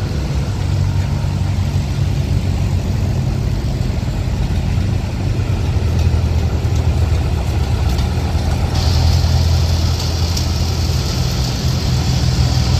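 Old tractor engines chug and putter steadily as they roll past close by.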